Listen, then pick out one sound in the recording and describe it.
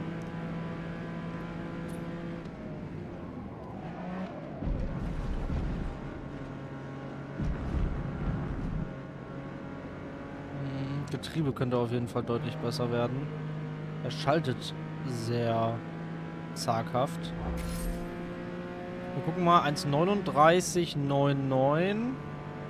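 A racing car engine drones steadily, rising and falling in pitch as the car speeds up and slows down.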